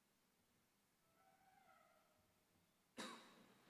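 A man chants faintly in a large echoing hall.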